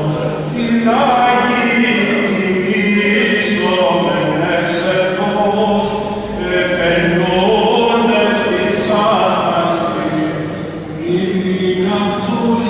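An elderly man chants in a sustained voice, echoing in a large reverberant hall.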